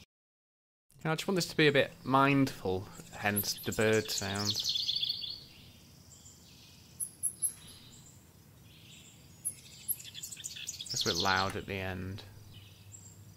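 A man speaks calmly and close, heard through a microphone.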